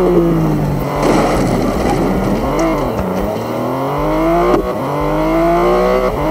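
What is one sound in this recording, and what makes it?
A racing car engine roars, its pitch rising and falling as it shifts gears.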